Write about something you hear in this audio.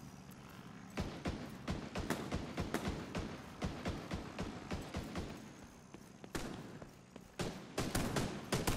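Guns fire in rapid, loud bursts.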